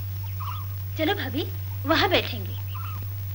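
A young woman speaks briefly and softly nearby.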